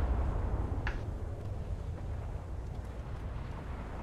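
Shells splash into water with dull thuds.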